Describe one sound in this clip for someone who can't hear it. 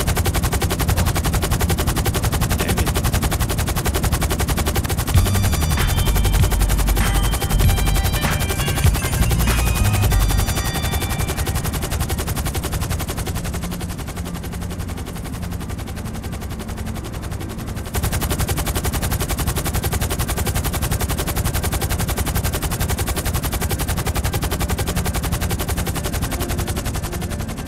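A helicopter's rotor thumps steadily overhead.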